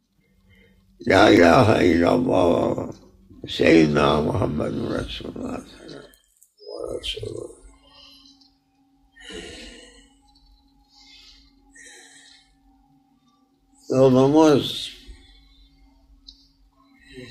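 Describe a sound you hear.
An elderly man speaks slowly and with feeling, close by.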